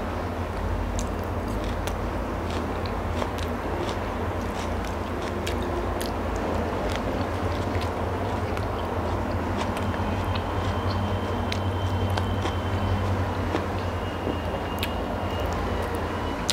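A young woman chews food with wet, smacking sounds close to a microphone.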